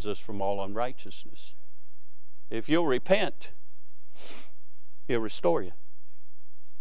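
A man speaks slowly and deliberately through a microphone in a large echoing room.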